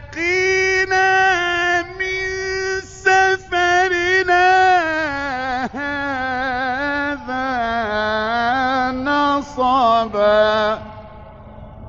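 A man chants loudly in long, wavering held notes through a microphone.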